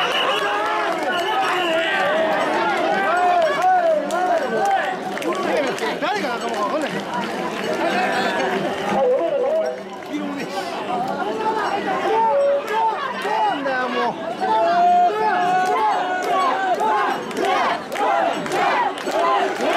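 A large crowd of men chants and shouts outdoors.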